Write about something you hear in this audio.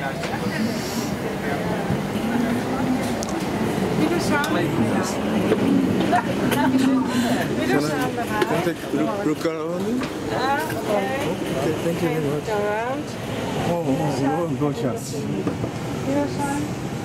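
Men and women chat and murmur nearby.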